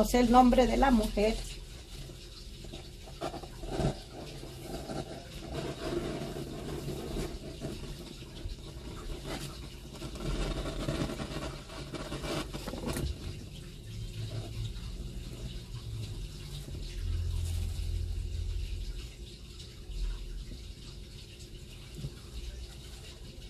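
Flames crackle and hiss as something burns.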